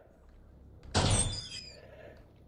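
A heavy metal door bangs shut.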